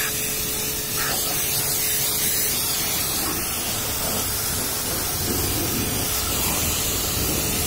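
A pressure washer sprays water hard against a vehicle's side with a steady loud hiss.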